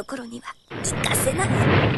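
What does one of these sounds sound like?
An explosion bursts and rumbles.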